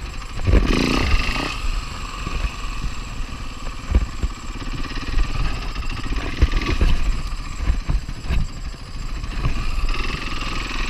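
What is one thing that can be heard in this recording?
Wind rushes hard past the rider.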